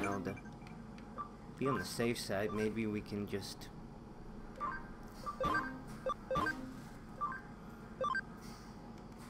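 Short electronic menu chimes ring out.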